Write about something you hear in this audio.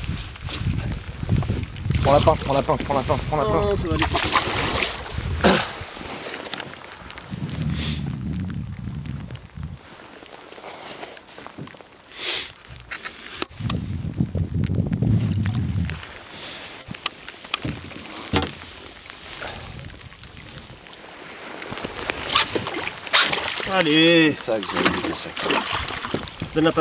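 A fish splashes in the water close by.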